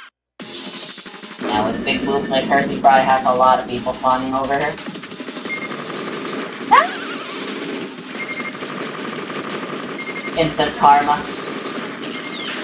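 Rapid electronic blips of a video game's shots rattle steadily.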